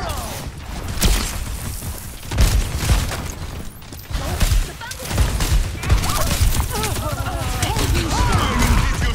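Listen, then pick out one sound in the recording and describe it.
Gunshots and blasts crack loudly in quick bursts.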